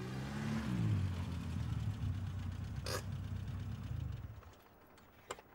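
A car engine rumbles as the car rolls to a stop.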